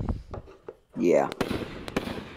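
A firework shell bursts with a sharp bang.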